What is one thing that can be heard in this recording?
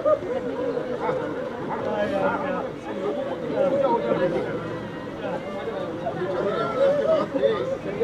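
An elderly woman sobs and wails.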